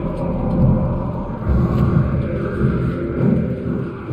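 Small footsteps patter across a creaky floor.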